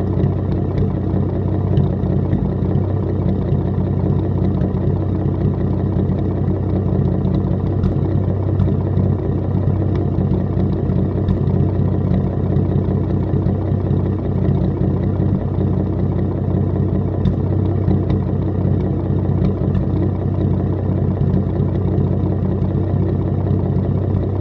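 A car engine idles with a steady, low rumbling exhaust close by.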